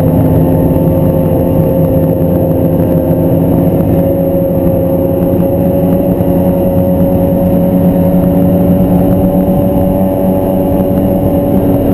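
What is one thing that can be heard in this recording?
A snowmobile engine drones loudly and steadily up close.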